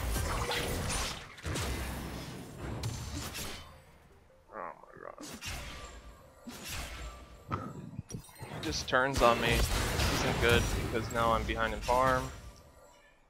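Magic blasts whoosh and crackle in a fantasy battle.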